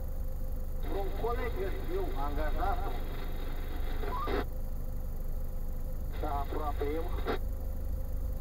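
A man speaks from outside a car, muffled through the glass.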